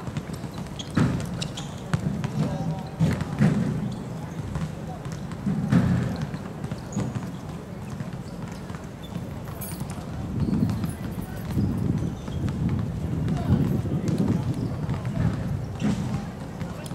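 A ball is kicked with sharp thuds on a hard court.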